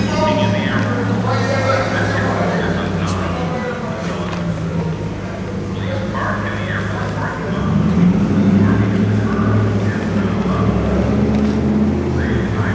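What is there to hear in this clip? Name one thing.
A plastic bag rustles as it swings.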